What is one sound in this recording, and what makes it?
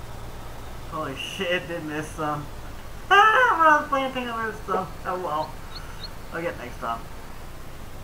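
A man speaks casually into a headset microphone.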